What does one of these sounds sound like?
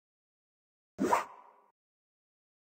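A game sound effect swooshes once.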